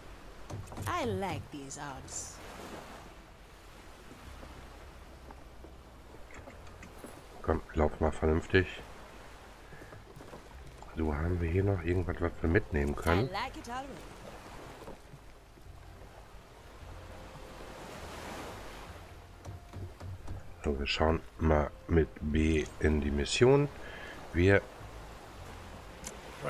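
Water laps gently against wooden piers.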